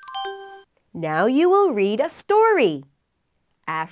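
A young woman speaks clearly and cheerfully into a microphone.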